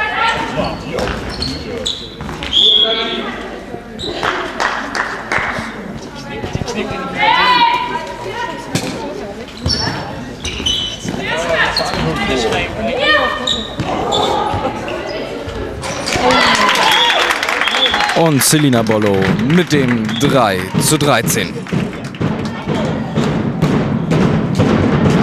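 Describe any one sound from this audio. Sports shoes squeak on a hall floor.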